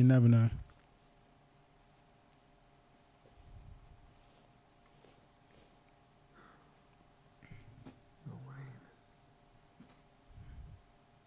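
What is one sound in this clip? A man speaks softly into a close microphone.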